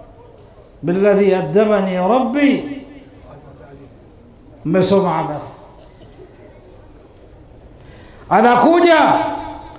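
An elderly man preaches forcefully into a microphone in short bursts.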